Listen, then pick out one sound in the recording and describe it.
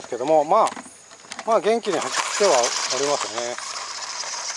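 A small electric motor whines and revs up and down.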